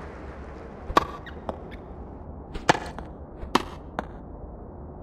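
Tennis balls are struck sharply with rackets, back and forth.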